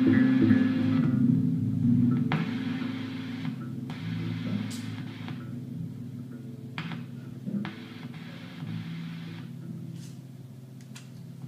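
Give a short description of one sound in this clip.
A man taps buttons on an electronic device.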